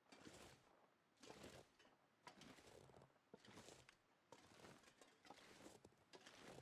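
Footsteps crunch through deep snow at a steady walking pace.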